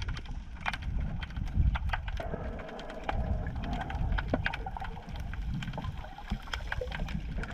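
Water rumbles and swishes underwater with a muffled, low rushing sound.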